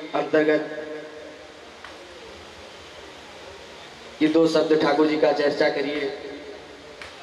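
A man sings into a microphone, heard through loudspeakers, with pauses between phrases.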